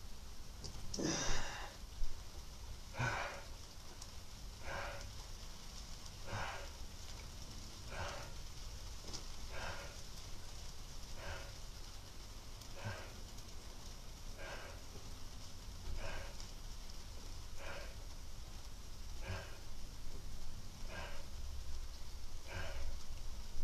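A man breathes out hard with each sit-up, at a steady, even pace.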